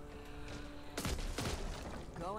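Gunshots bang sharply.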